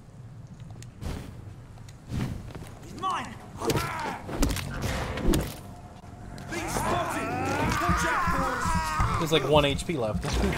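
Punches and blows land with heavy thuds.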